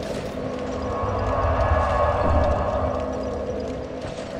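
A magical whoosh swells and fades.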